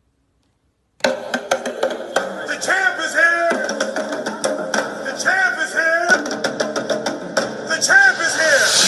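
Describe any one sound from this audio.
Music plays loudly through speakers.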